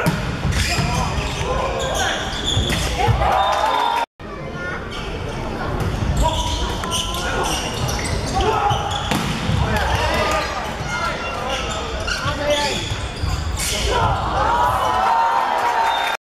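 Players and spectators shout and cheer in a large echoing hall.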